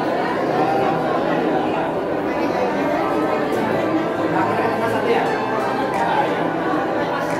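A crowd of men and women chatter in a room with some echo.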